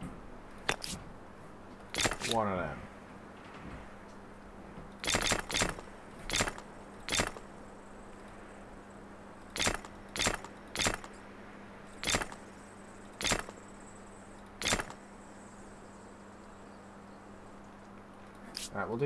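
Short sharp clicks sound now and then.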